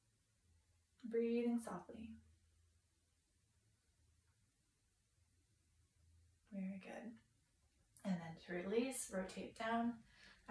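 A young woman speaks calmly and close by, giving gentle instructions.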